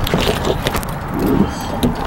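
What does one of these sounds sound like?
A truck door clicks open.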